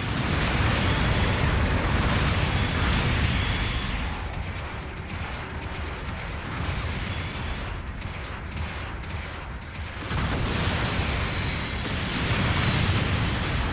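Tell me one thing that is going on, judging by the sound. Heavy gunfire and blasts boom in loud bursts.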